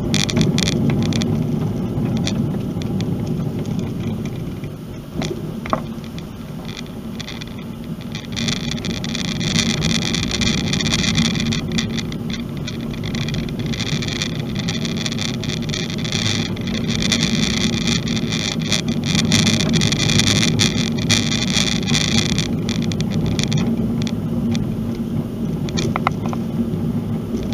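Tyres crunch and rumble on a gravel road.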